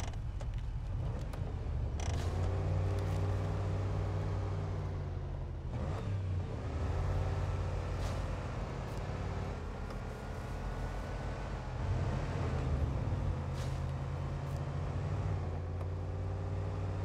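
Tyres crunch over snow and gravel.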